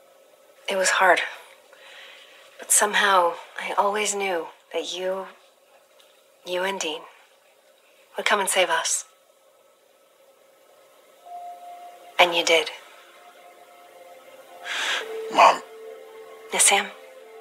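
A woman speaks softly and warmly nearby.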